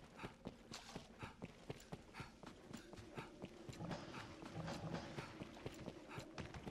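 Footsteps run quickly on hard stone.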